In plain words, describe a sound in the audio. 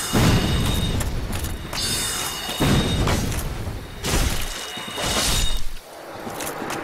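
A sword slashes and strikes with sharp metallic hits.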